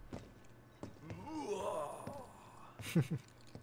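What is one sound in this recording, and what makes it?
A deep-voiced man speaks gruffly.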